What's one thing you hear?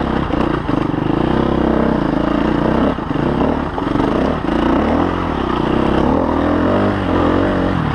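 Knobby tyres scrabble and thump over rock.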